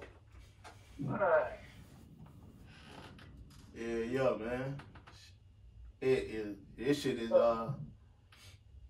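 A young man speaks casually close to a microphone.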